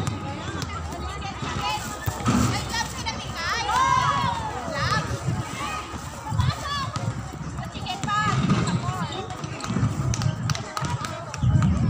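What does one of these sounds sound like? A volleyball thumps off players' hands and forearms.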